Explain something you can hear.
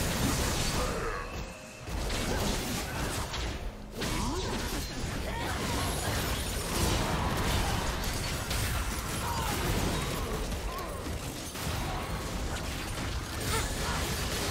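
Magic spells whoosh and burst in a fast, noisy battle.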